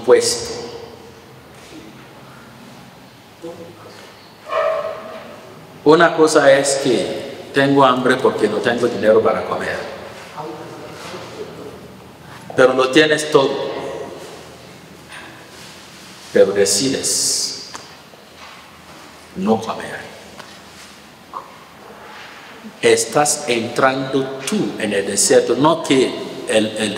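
A man speaks calmly into a microphone, with pauses, in a slightly echoing room.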